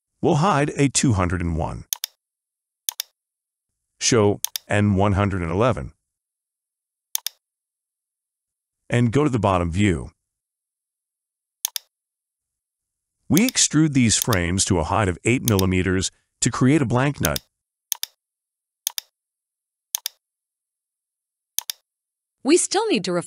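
A man speaks calmly and steadily into a close microphone.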